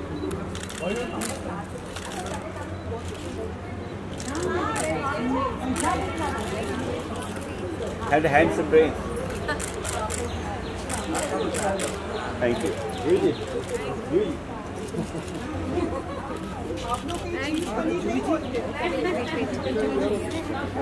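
A young woman speaks cheerfully to a group close by.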